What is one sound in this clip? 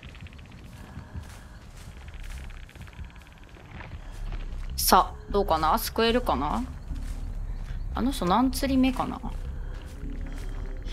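Footsteps run through rustling grass.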